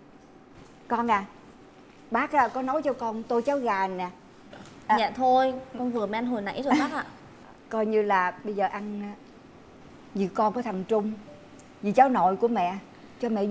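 An older woman speaks close by in a pleading, upset voice.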